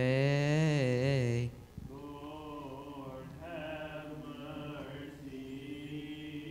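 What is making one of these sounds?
A man chants in a slow, sung voice, echoing in a large room.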